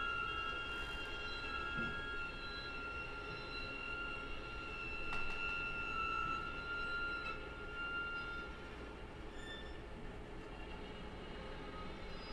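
A string quartet plays a slow, sustained piece.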